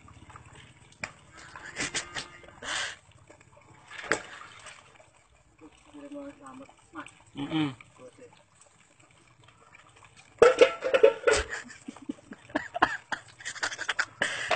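Dishes clink and clatter as they are washed.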